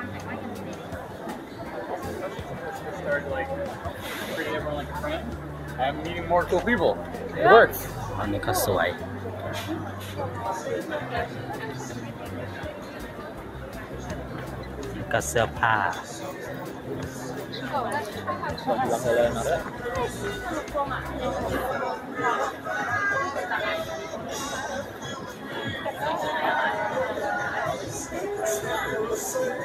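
A crowd murmurs and chatters all around.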